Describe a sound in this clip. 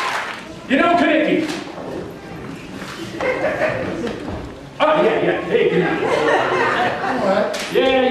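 A man speaks loudly and with animation in a room with some echo.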